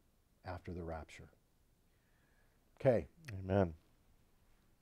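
An older man speaks calmly and up close, in short phrases.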